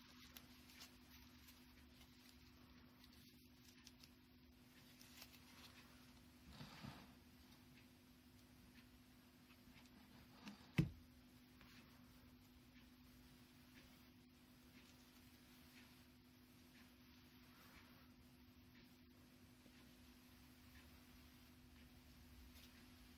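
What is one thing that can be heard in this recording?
Satin ribbon rustles softly between fingers.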